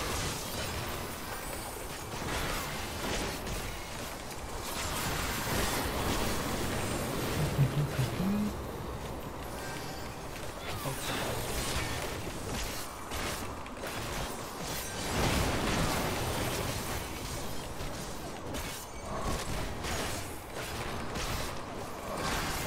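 Magic blasts and impacts crash and whoosh in a video game battle.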